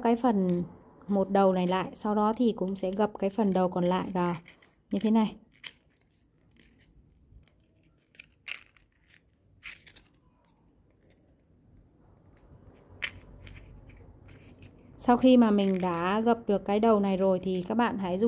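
Stiff paper crinkles and rustles as it is folded by hand.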